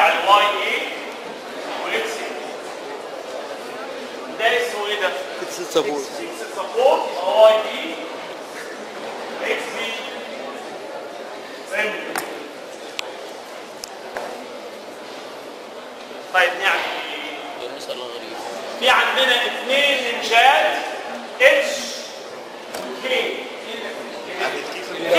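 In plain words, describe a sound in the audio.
A middle-aged man speaks with animation, lecturing.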